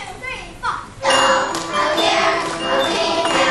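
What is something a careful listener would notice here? A children's choir sings together in an echoing hall.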